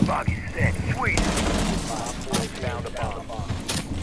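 A rifle fires a short burst.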